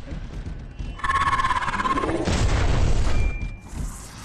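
An electric blade crackles and zaps in a sudden burst.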